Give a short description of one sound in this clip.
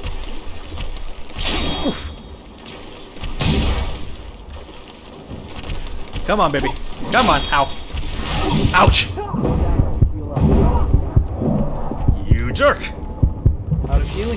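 Heavy metal blows clash and thud in a game fight.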